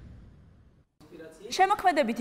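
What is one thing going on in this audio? A woman speaks clearly.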